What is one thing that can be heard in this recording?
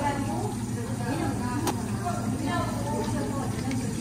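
Coffee pours over ice in a cup.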